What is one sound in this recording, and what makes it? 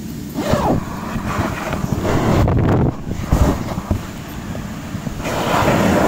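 A zipper slides open.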